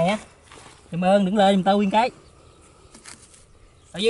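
Hands scrape through loose, dry soil.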